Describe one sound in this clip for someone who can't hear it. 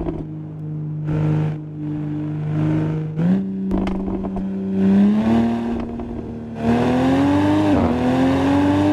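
Tyres squeal in bursts as the car drifts through bends.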